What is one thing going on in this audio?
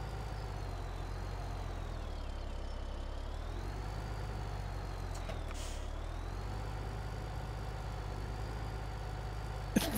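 A tractor engine hums steadily at low idle.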